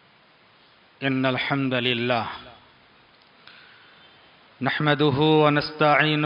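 A middle-aged man speaks slowly and solemnly into a microphone.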